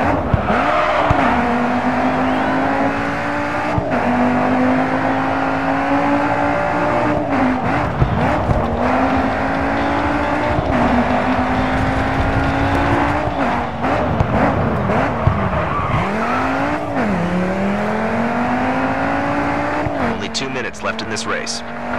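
A car engine revs hard, rising and dropping in pitch as the gears shift.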